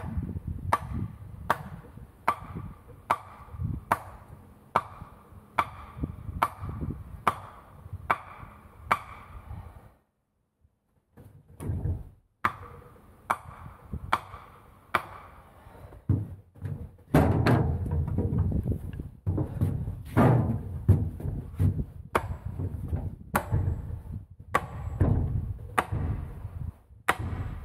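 A hoe chops repeatedly into the ground with dull thuds.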